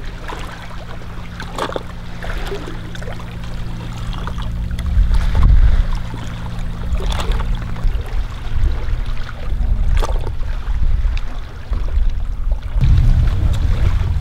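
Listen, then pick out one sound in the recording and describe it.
Wind blows across the microphone in low rumbling gusts.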